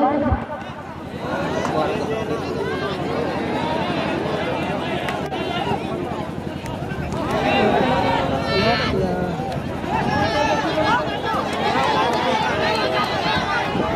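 A large crowd of spectators shouts and cheers outdoors.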